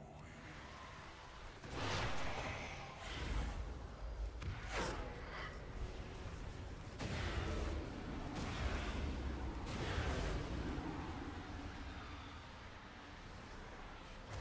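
Video game combat effects thud and whoosh.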